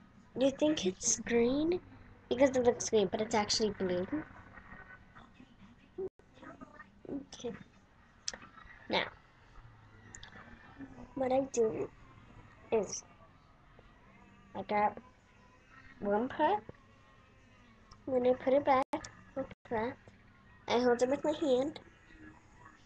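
A young girl speaks in short bursts close to a webcam microphone.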